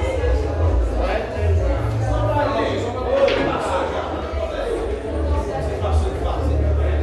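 Billiard balls click together sharply.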